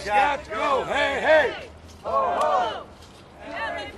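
A man shouts loudly and rhythmically close by.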